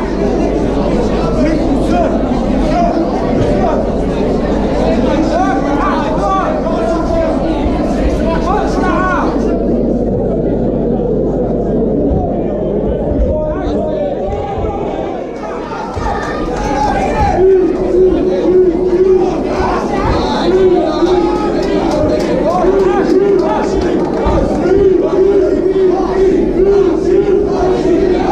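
Fighters thud and scuffle on a padded mat.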